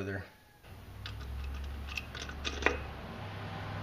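A metal plate clinks and scrapes against metal parts.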